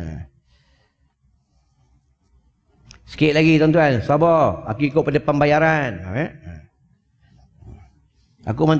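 A man speaks calmly into a microphone, in a slow, chanting voice.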